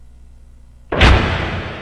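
Loud electronic music starts suddenly.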